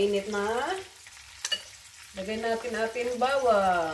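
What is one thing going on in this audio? A metal pot clinks as it is handled.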